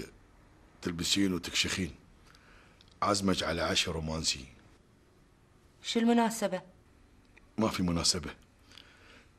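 A middle-aged man speaks calmly nearby, in short bursts.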